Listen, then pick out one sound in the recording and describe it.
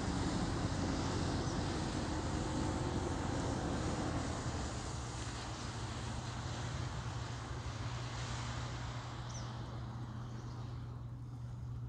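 Wind blows in gusts outdoors and then dies down.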